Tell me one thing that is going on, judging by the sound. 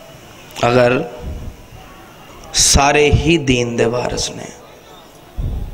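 A young man recites in a melodic chanting voice through a microphone, heard over loudspeakers.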